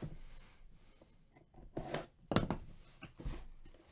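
A box cutter slices through packing tape.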